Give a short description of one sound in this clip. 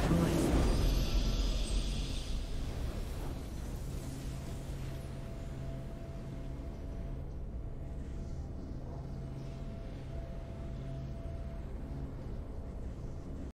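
A triumphant victory fanfare plays.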